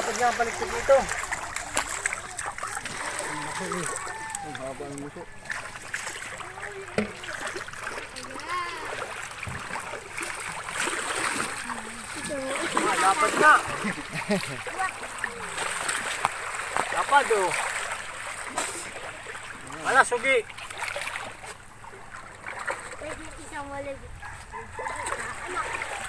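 Shallow water splashes and laps around a large fish.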